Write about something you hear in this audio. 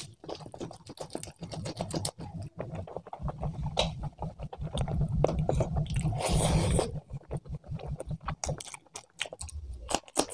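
A man chews food loudly and wetly, close to a microphone.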